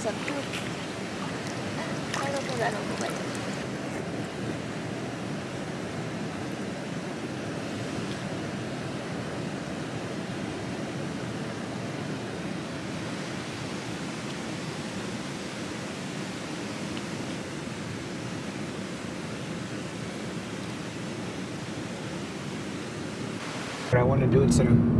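Water murmurs and ripples steadily.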